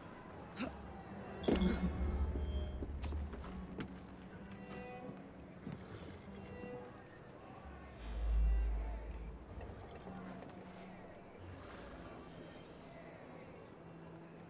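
Footsteps tap on cobblestones.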